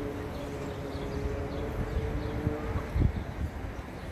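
A bus engine hums as the bus pulls past.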